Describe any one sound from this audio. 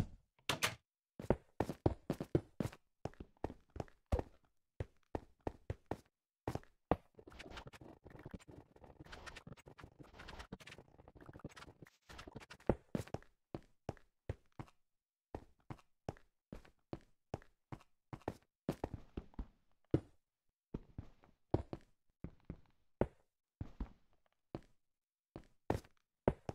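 Blocks thud and clack as they are placed one after another.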